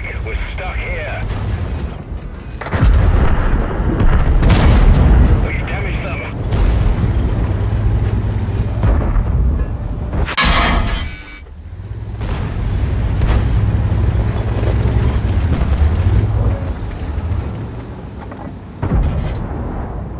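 A heavy tank engine rumbles and roars.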